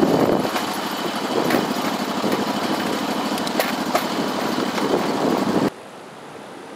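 Wheels rumble and clatter steadily along a rail track close by.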